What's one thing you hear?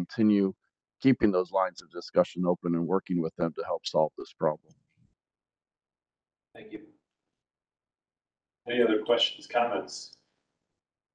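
A middle-aged man speaks calmly over an online call, with pauses.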